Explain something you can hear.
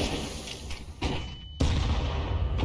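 A flash grenade bangs loudly.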